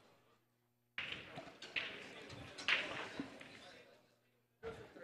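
Billiard balls clack and rattle together as they are gathered into a rack.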